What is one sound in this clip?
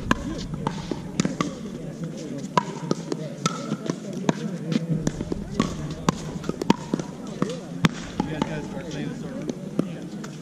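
Players' shoes scuff and squeak on the hard court.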